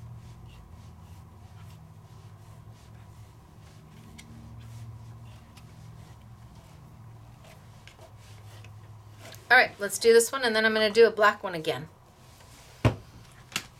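A brush softly scrapes across paper.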